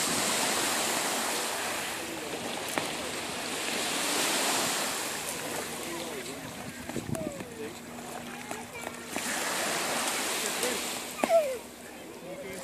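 Waves wash onto a shore in a steady rush.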